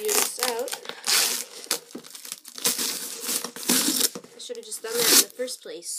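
Packing tape tears loudly off a cardboard box.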